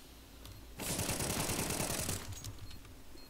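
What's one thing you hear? Gunfire rattles in a quick burst.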